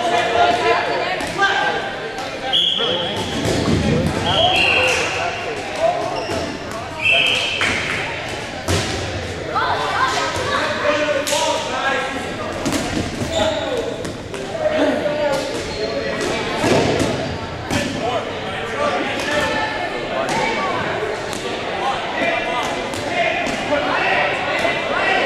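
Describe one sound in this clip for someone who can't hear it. A crowd of young people shouts and chatters in a large echoing gym.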